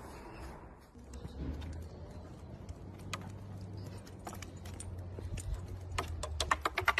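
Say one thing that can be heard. A dog's paws patter on pavement outdoors.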